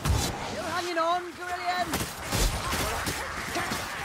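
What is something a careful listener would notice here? A blade slashes and thuds into bodies.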